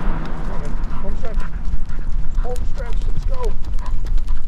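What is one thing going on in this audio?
A dog's claws tap on the pavement.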